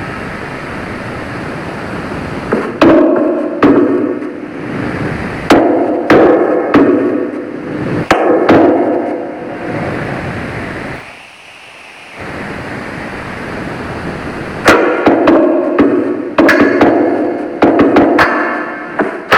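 Blocks thud softly as they are placed.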